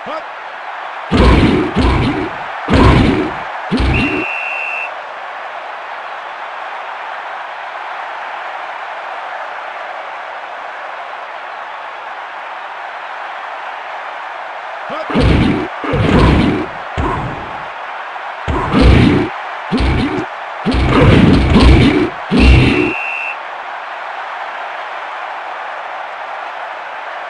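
A crowd roars steadily throughout.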